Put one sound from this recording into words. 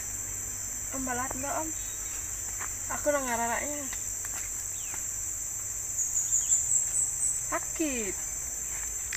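A young woman speaks calmly and cheerfully, close by.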